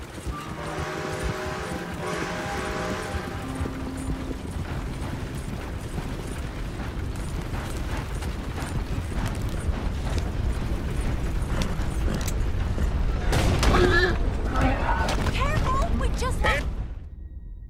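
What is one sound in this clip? Horse hooves clop steadily.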